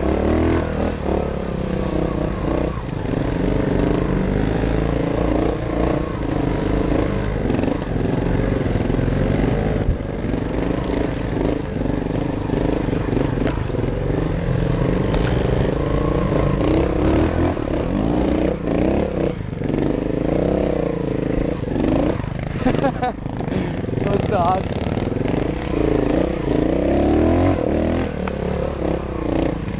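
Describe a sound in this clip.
Another dirt bike engine buzzes a short way ahead.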